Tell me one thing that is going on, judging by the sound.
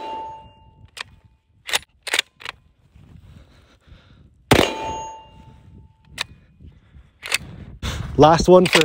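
A rifle bolt clacks as it is worked.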